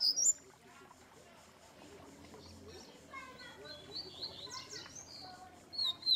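A caged bird sings with quick, high chirps and trills.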